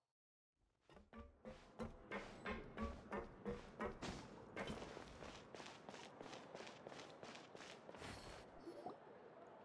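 Footsteps run quickly on a hard floor.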